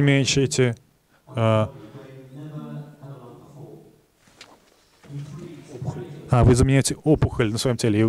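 A man speaks with animation into a microphone over a loudspeaker in a large room.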